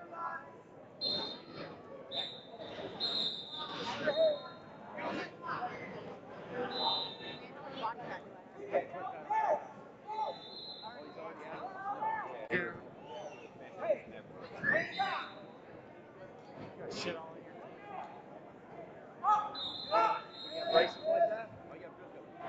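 A referee blows a whistle in short sharp blasts.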